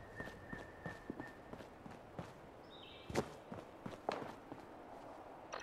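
Footsteps crunch over rocky ground.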